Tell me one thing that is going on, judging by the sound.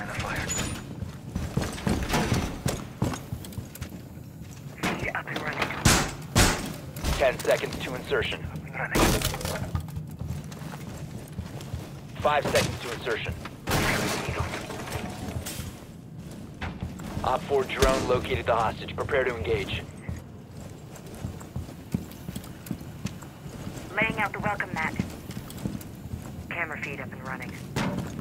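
Footsteps thud on a hard floor.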